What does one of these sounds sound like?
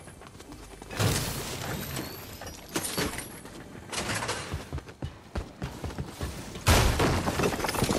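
A pickaxe swings and smashes through a wall.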